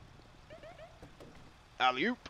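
A truck door clicks open.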